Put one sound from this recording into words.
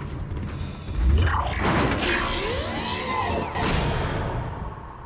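A heavy metal door slides open with a mechanical whoosh.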